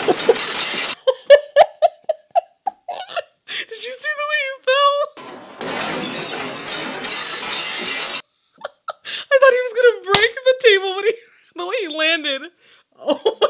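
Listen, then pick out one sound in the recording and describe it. A young woman laughs loudly close to a microphone.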